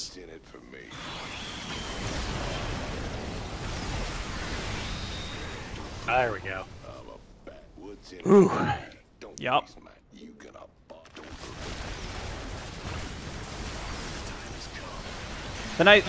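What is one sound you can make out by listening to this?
Energy weapons zap and crackle in a noisy battle.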